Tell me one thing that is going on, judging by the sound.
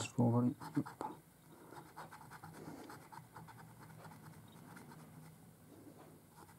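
A coin scratches rapidly across a scratch card.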